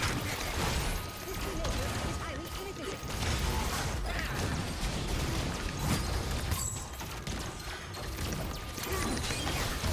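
Spells blast and crackle in a fast fight.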